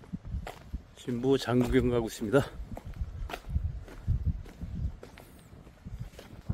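Footsteps tap steadily on pavement outdoors.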